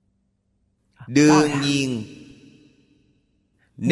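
An elderly man speaks slowly and calmly into a close microphone.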